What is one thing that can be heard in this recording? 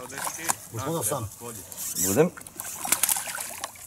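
A fish splashes and thrashes at the water's surface close by.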